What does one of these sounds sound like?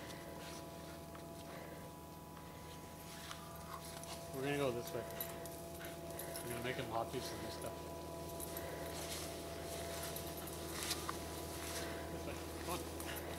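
Snow crunches as dogs dig and move about.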